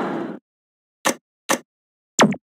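Short menu beeps sound.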